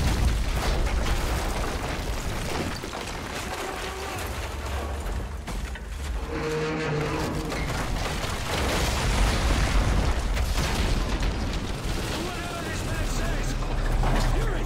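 A low rumble of fire and explosions rolls throughout.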